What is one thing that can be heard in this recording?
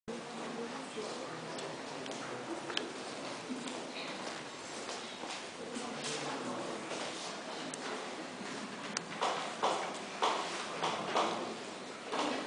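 Footsteps shuffle across a wooden stage.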